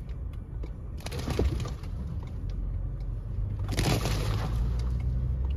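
Snowy branches scrape and thump against a car windshield.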